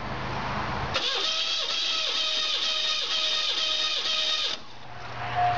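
A car engine runs steadily at idle.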